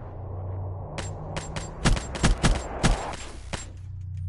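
A gun fires in rapid, loud bursts.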